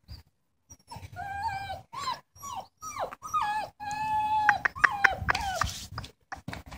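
A puppy whines and yelps close by.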